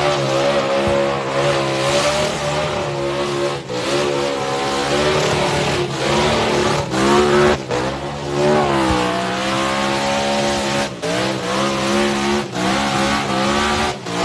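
A loud car engine roars and revs hard.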